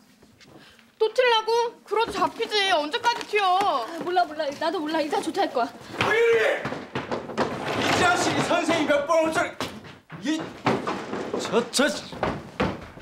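Several girls talk excitedly at once.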